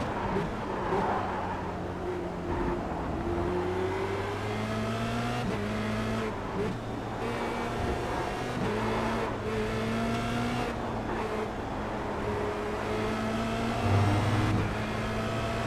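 A racing car engine whines loudly, rising in pitch through each gear and dropping sharply at each shift.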